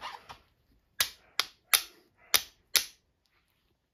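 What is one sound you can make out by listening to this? A flint lighter clicks and scrapes several times.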